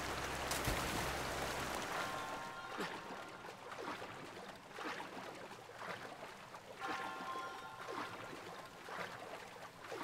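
Water splashes in rhythmic strokes as a swimmer paddles along.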